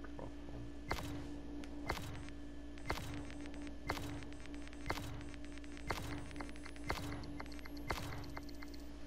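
A game countdown timer ticks once a second.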